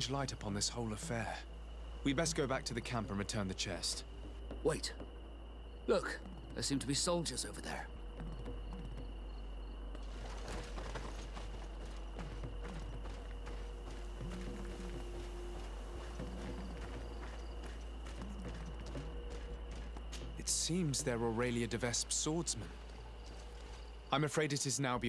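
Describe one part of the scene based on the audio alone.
Men speak in turn in calm, close voices.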